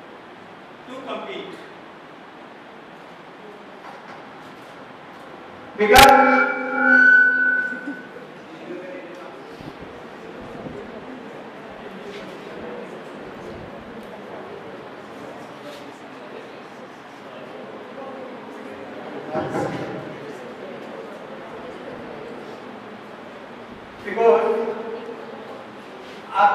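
A man speaks into a microphone in short bursts, heard through loudspeakers in an echoing hall.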